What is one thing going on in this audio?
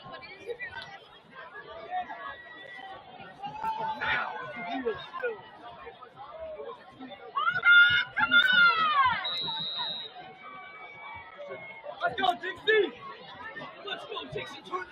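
Young men on a sideline talk and call out to each other outdoors.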